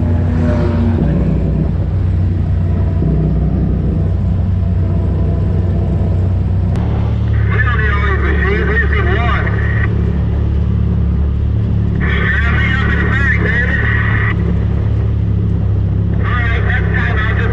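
An off-road vehicle engine drones steadily.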